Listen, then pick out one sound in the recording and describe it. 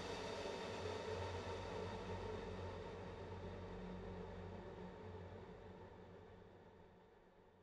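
Rain patters steadily onto a puddle and slowly fades away.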